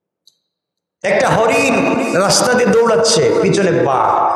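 A man speaks loudly and with feeling through a microphone, his voice carried over loudspeakers.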